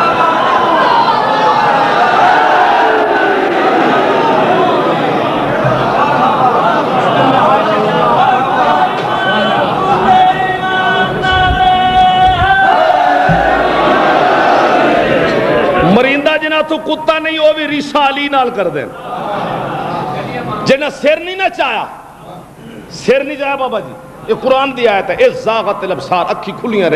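A man speaks with passion through a microphone and loudspeakers.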